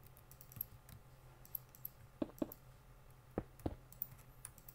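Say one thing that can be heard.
Heavy blocks thump down as they are placed.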